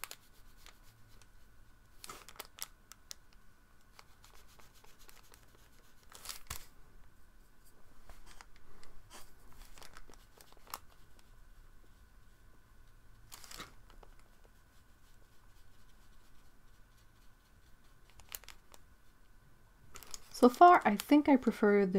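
A paintbrush softly dabs and strokes across paper.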